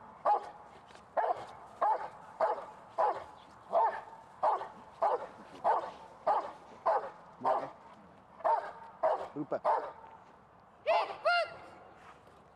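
A large dog barks loudly and rapidly at close range.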